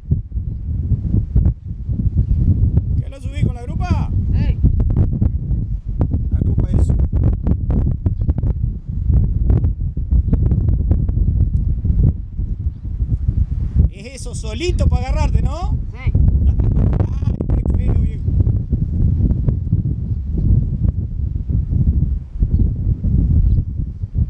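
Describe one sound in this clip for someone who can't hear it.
Wind blusters hard against the microphone outdoors.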